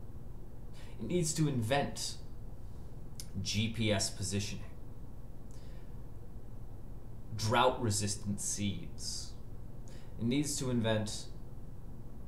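A man speaks calmly in short phrases through a microphone, with pauses between them.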